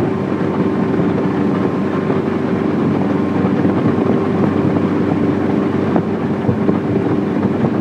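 A speedboat engine drones while under way at speed.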